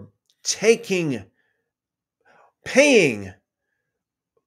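A man speaks expressively into a close microphone, in short bursts with pauses.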